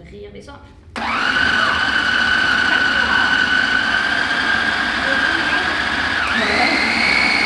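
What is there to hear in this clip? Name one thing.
A food processor whirs loudly and steadily.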